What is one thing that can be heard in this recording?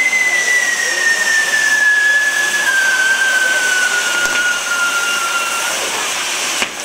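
A firework whistles shrilly, slowly falling in pitch.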